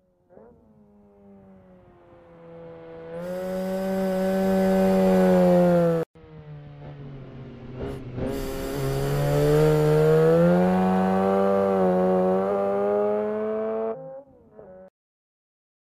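A car engine revs loudly and climbs in pitch as the car speeds past.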